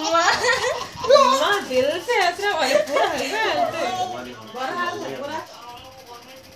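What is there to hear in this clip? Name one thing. A toddler giggles and babbles.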